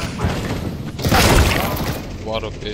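Rifle shots ring out in a short burst.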